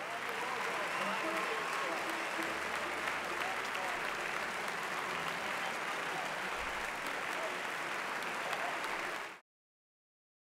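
A large audience applauds loudly in a big hall.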